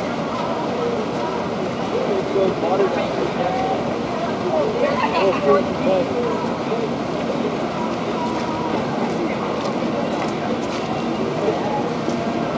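Teenage boys talk and laugh nearby.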